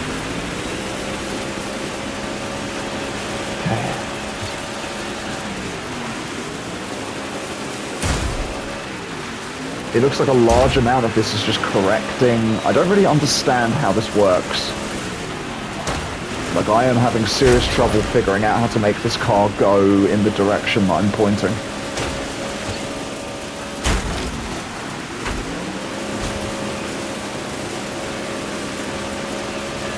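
A racing car engine roars steadily, its pitch rising and falling with the throttle.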